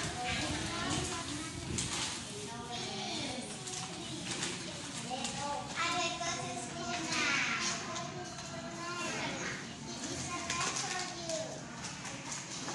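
Young girls talk and chatter playfully close by.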